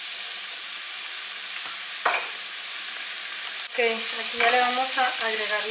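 Vegetables sizzle in oil in a frying pan.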